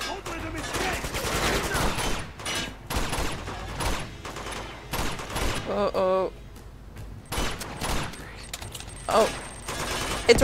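A pistol fires shot after shot.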